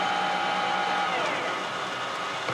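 A metal lathe runs, then winds down to a stop.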